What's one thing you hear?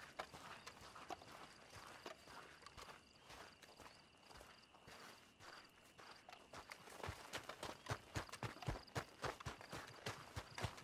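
Footsteps crunch on dry dirt at a steady walking pace.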